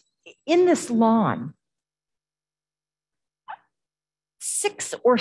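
A woman speaks expressively through a microphone, heard over an online call.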